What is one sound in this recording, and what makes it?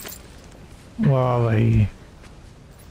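A man shouts out loudly in a long strained cry.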